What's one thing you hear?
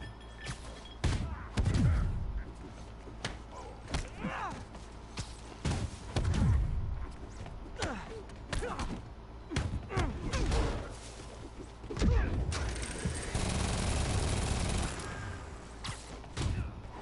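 Punches and kicks thud in quick bursts.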